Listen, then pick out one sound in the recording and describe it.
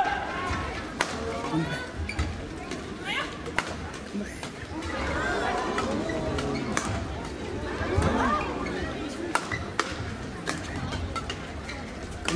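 Shuttlecocks are struck with sharp smacks of rackets.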